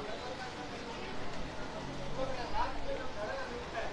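Plastic wrapping rustles as hands handle it.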